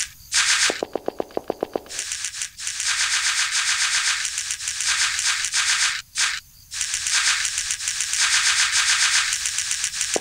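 Quick, soft footsteps patter steadily.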